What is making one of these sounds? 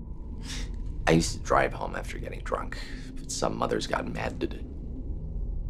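A man speaks slowly and quietly nearby.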